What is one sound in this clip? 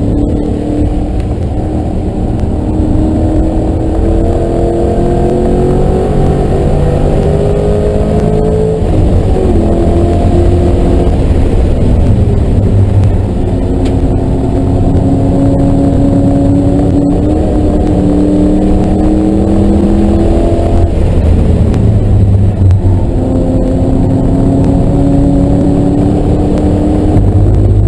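A car engine roars loudly from inside the cabin, rising in pitch as it speeds up and dropping as it slows for corners.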